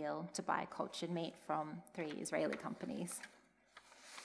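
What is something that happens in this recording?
A young woman speaks calmly through a microphone in a large echoing room.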